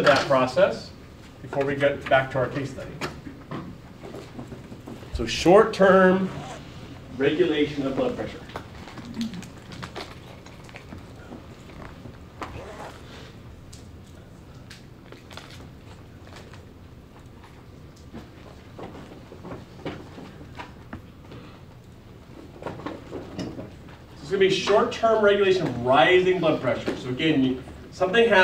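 A man speaks calmly, lecturing from across an echoing room.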